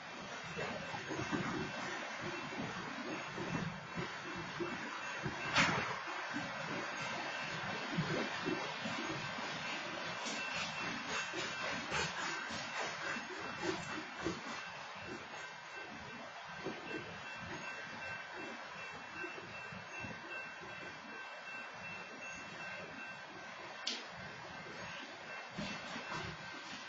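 A freight train rumbles steadily past nearby.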